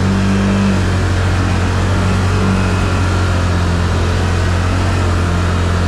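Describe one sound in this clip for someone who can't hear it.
An all-terrain vehicle's engine hums steadily close by.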